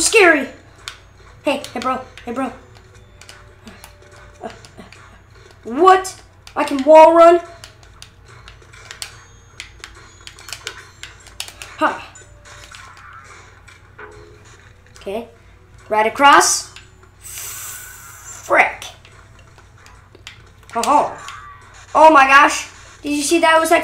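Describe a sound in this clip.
A boy speaks with animation close to a microphone, in short bursts.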